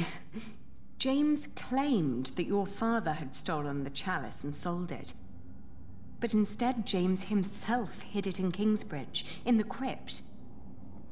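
A woman speaks calmly, reading out lines.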